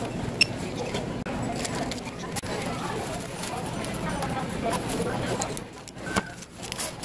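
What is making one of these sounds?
A shopping cart rattles as it rolls across a hard floor.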